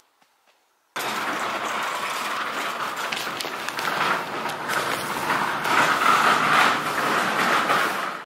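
A newspaper rustles as its pages are handled.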